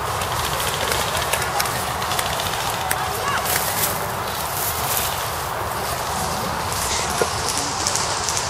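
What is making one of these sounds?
Airsoft rifles fire outdoors.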